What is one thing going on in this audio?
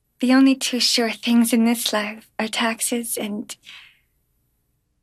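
A young woman speaks close by, calmly and clearly.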